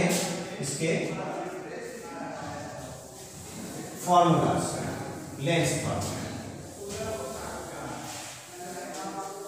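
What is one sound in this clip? A man speaks in a steady explaining tone, close by.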